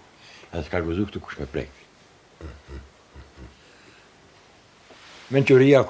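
An elderly man speaks calmly nearby, in short bursts.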